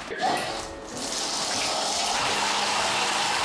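Water runs from a tap into a basin.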